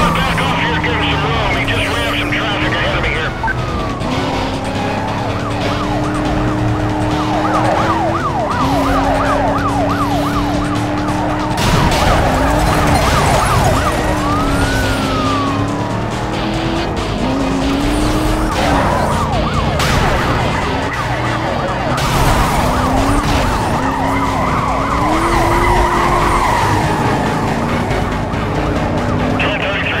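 Police sirens wail and sweep up and down.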